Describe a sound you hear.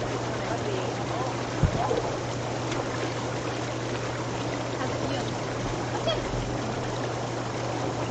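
Water splashes as a young woman climbs into a hot tub.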